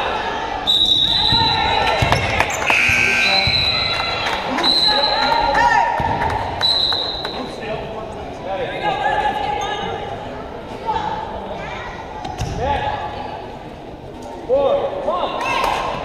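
A crowd of spectators chatters and calls out.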